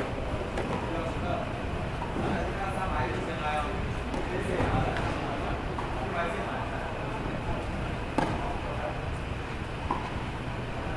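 Tennis balls are struck with rackets, each hit a sharp pop echoing in a large open hall.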